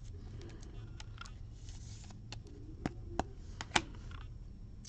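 A plastic card sleeve crinkles and taps as it is handled.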